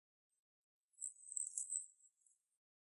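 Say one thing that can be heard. A plastic wrapper crinkles softly as it is peeled off.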